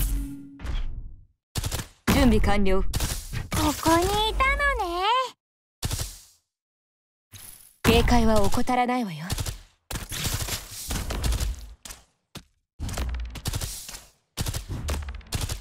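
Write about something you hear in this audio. Video game combat effects of blows and shots clash in quick bursts.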